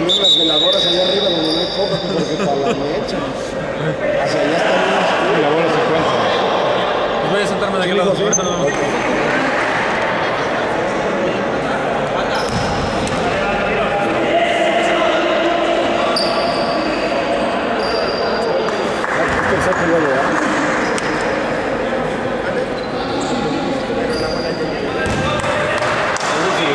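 Many voices chatter and call out through a large echoing gym.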